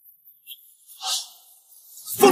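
A hand slaps a face sharply.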